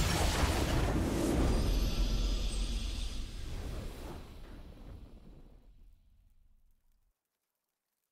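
A triumphant game victory fanfare swells and slowly fades away.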